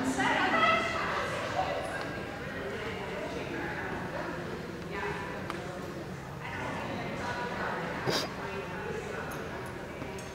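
A woman calls and talks to a dog in a large echoing hall.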